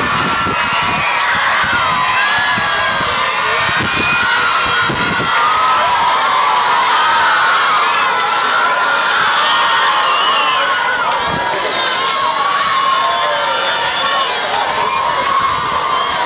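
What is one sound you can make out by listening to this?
A crowd of young people chatters and cheers outdoors.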